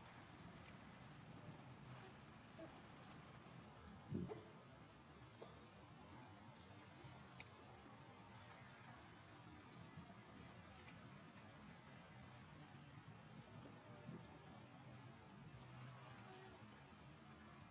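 A young monkey tears banana peel.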